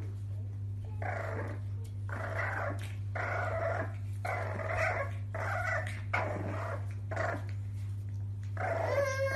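Puppies yap and growl in short bursts.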